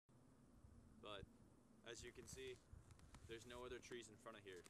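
A man speaks calmly, close by, outdoors.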